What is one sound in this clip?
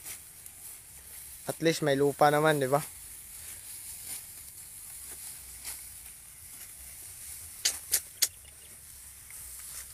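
Tall grass rustles as people wade through it.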